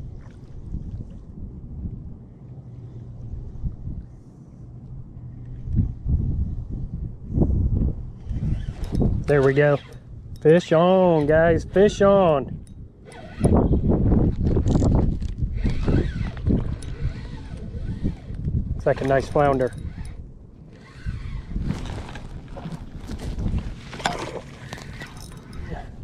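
A fishing reel whirs as its line is cranked in.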